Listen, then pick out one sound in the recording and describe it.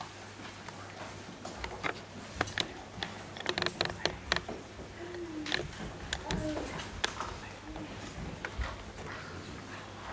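Footsteps and shuffling sound as a group of people moves about.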